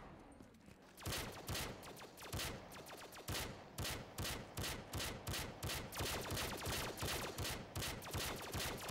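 A pistol fires a quick run of sharp shots.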